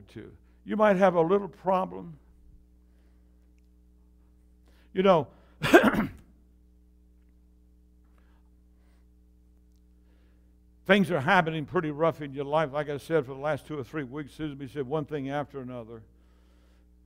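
An elderly man speaks with animation through a microphone, heard in a room with some echo.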